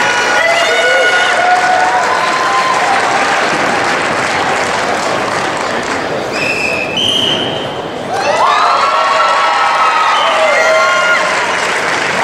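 Young fighters shout sharply as they strike.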